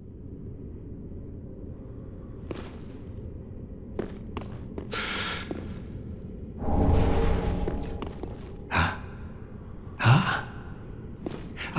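Armoured footsteps crunch on stone.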